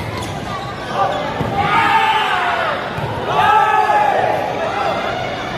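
Young men shout excitedly during a rally.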